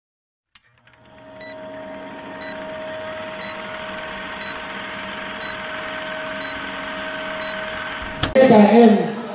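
A film projector rattles and hums steadily.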